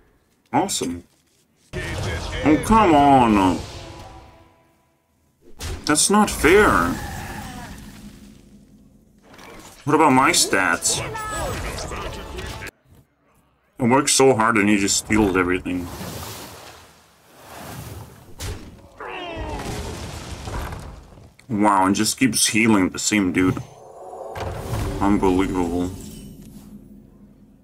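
Magical sound effects whoosh and chime.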